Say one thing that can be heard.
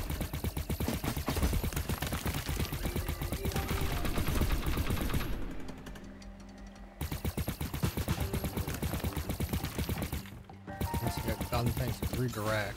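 Rapid electronic shots fire in quick bursts.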